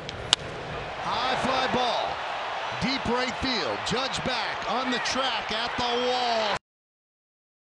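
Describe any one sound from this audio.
A large crowd cheers loudly in a stadium.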